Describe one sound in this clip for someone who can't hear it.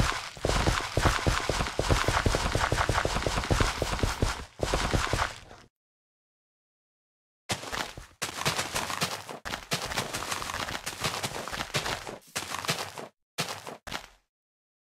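Footsteps crunch over grass and soil.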